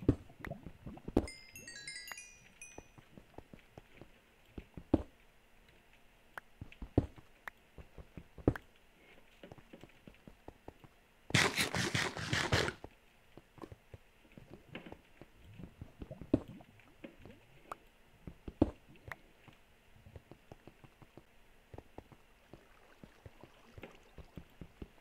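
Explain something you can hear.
Blocks crunch and thud as a pickaxe digs, in short repeated knocks.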